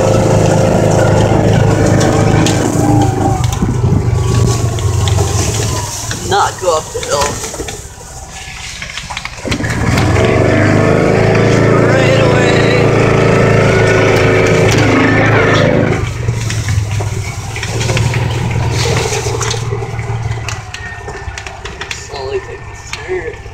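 A vehicle rattles and bumps over rough ground.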